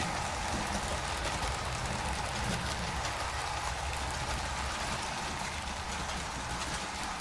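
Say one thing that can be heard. A model train rumbles steadily along the track.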